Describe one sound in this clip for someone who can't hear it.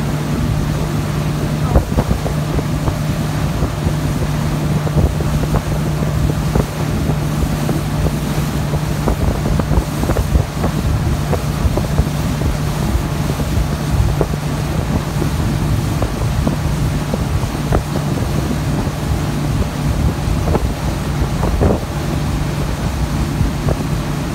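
Churning wake water rushes and splashes behind the boat.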